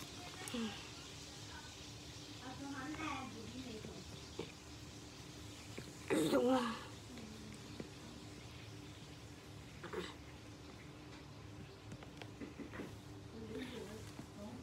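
A young boy talks quietly and close by.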